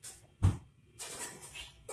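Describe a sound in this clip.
A person taps on a register's touchscreen.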